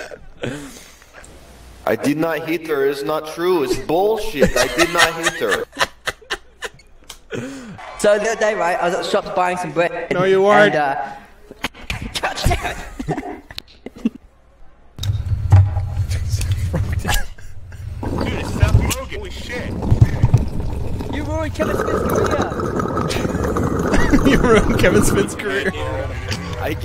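A second man chats and laughs nearby.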